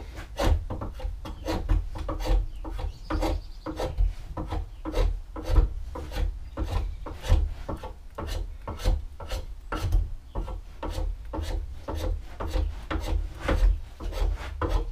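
A hand tool scrapes wood in short, quick strokes.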